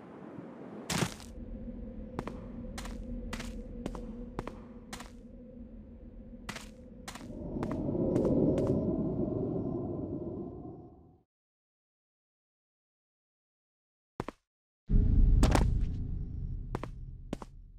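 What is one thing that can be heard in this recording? Footsteps tap steadily on stone.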